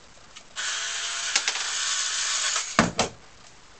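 A cordless screwdriver whirs as it drives a screw.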